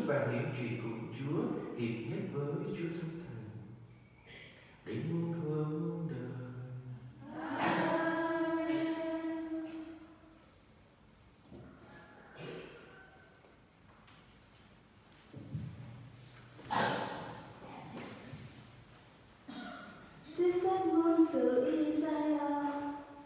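A congregation chants together in a large echoing hall.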